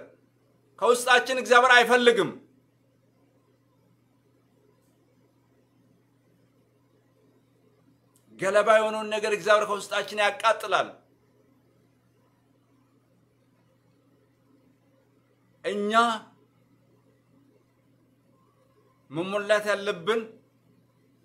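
A man speaks calmly and close by, in short phrases with long pauses.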